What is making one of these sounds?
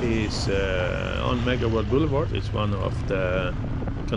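A motorbike engine hums as it passes close by.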